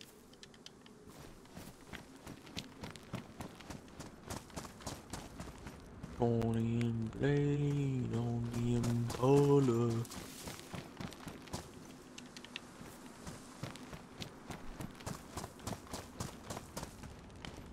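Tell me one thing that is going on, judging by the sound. Footsteps run quickly over dry grass and gravel.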